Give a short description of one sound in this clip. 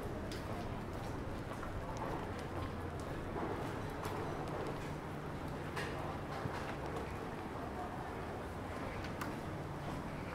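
Light rain patters and drips onto wet cobblestones outdoors.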